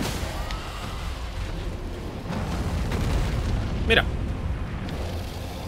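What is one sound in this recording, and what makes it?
A deep rumbling roar of a huge creature sounds.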